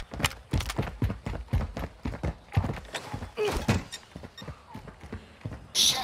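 Footsteps run on concrete.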